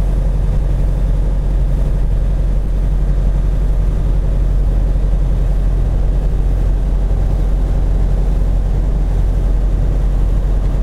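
Tyres roll over a snowy road.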